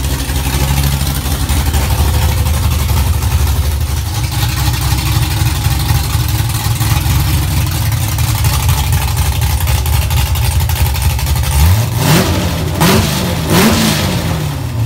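A car engine idles with a deep, choppy rumble from the exhaust.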